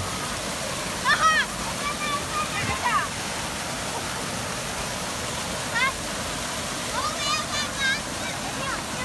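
Children shout and squeal excitedly nearby.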